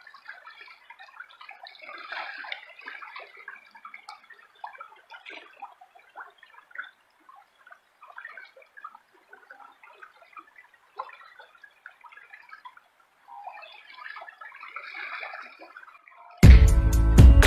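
A river babbles and splashes over rocks close by.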